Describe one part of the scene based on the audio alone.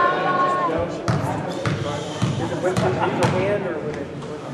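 A basketball bounces on a wooden gym floor.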